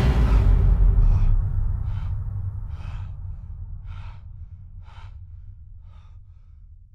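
A man gasps and breathes heavily.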